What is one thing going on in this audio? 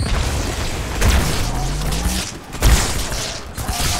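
A plasma grenade explodes with a loud blast.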